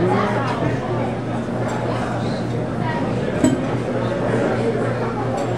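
A crowd chatters outdoors in the background.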